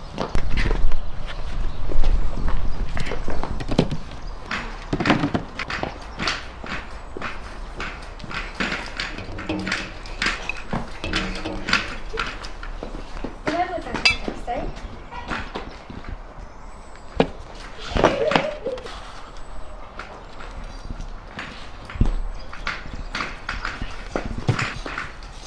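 A man talks calmly nearby, outdoors.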